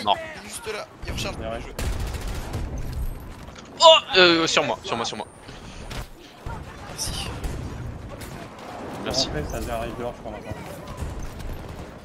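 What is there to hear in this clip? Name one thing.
Gunfire from a video game crackles in rapid bursts.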